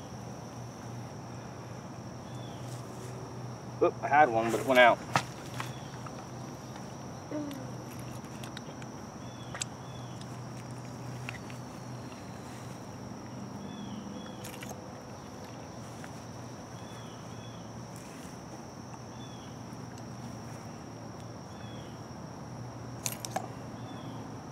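A knife scrapes and taps against a stick.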